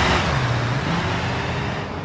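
A police siren wails.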